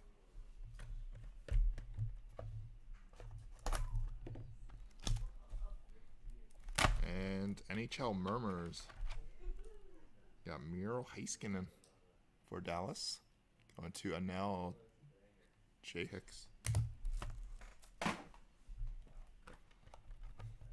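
Cardboard packaging rustles and taps as it is handled.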